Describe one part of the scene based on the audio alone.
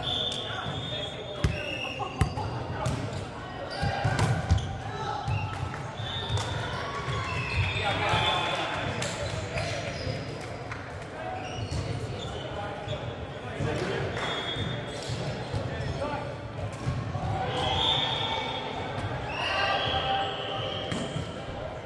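Players' shoes squeak sharply on a hard floor in a large echoing hall.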